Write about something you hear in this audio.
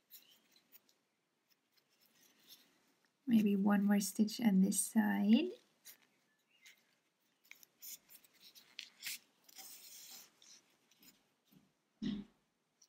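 Yarn rustles softly as it is pulled through crocheted fabric.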